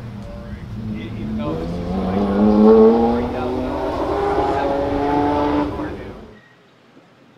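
A vehicle engine revs and rises in pitch as it drives past.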